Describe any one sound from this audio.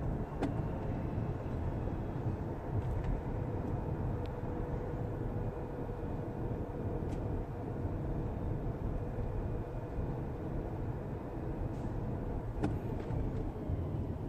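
A car engine hums steadily with low road rumble from inside a moving car.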